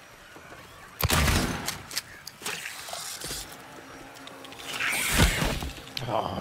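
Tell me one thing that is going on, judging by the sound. Gunshots ring out sharply with a short echo.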